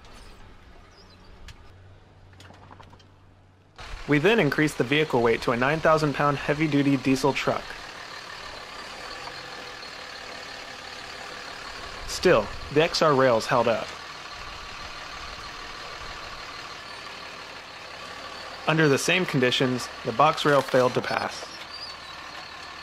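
A truck engine rumbles at low speed.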